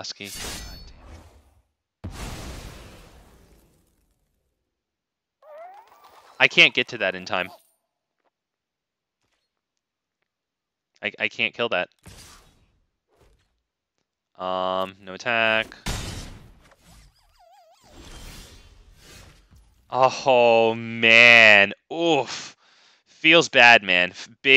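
Short magical whooshes and chimes ring out now and then.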